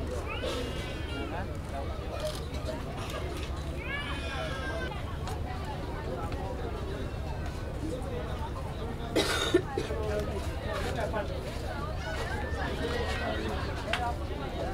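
Adults talk quietly nearby.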